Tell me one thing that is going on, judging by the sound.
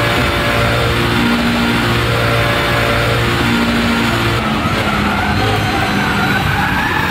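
A racing car engine roars loudly, its pitch stepping up and down through gear changes.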